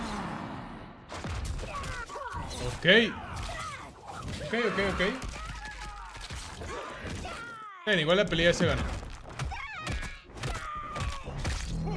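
Heavy punches and kicks land with loud thuds.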